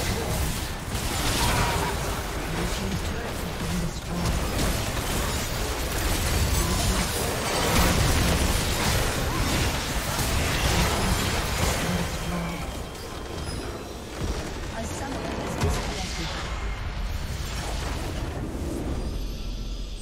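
Magic blasts and clashing weapons crackle and boom in a fast battle.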